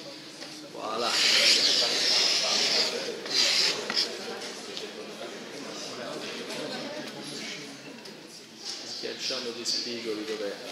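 A tool scrapes through loose sand.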